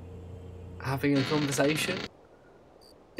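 A metal door slides open with a hiss.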